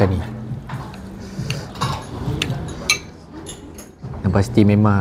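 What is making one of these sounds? A knife and fork scrape on a plate.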